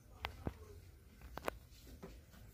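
A metal refrigerator door thumps and rattles.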